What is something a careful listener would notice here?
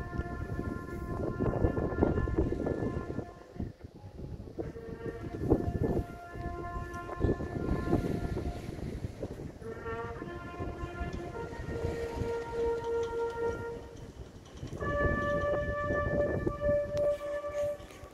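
A bugle plays a slow call outdoors, sounding long held notes.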